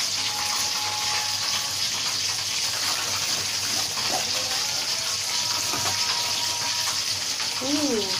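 A knife cuts through crispy fried batter on a wooden board.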